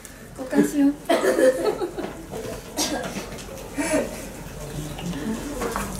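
A young woman laughs up close.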